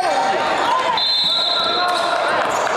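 A referee blows a short, sharp whistle.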